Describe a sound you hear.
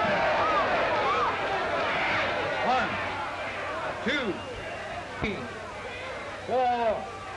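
A crowd roars and cheers in a large hall.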